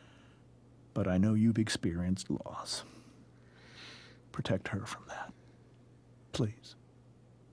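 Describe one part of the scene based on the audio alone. A man speaks calmly and softly, close by.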